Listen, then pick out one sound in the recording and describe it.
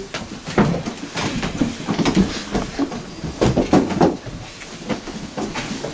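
A stool scrapes and knocks on a wooden floor.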